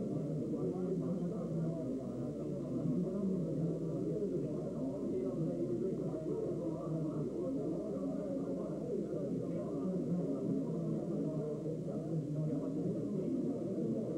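A crowd of elderly men chatters all around in a busy room.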